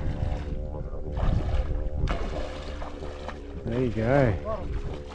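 A man wades through shallow water with splashing steps.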